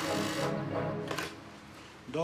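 A telephone receiver clatters as it is lifted.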